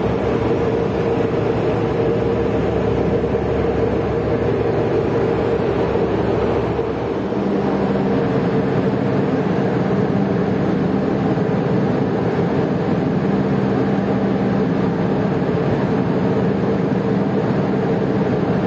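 Water churns and splashes behind a tugboat's propeller.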